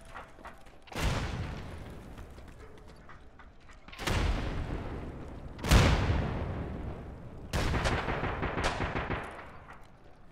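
Gunshots ring out with a long echo.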